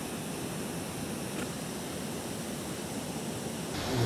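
Water laps gently against rocks.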